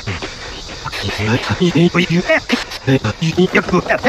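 A man shouts loudly and angrily.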